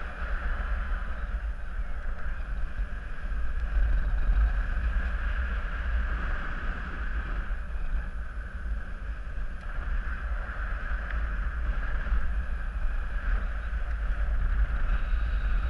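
Wind rushes and buffets loudly against the microphone, high in the open air.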